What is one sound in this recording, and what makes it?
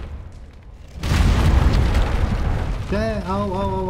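A loud fiery blast roars.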